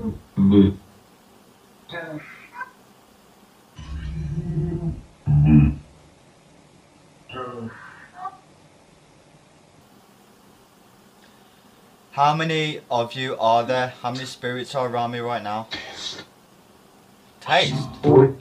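A young man speaks in short, broken phrases close by.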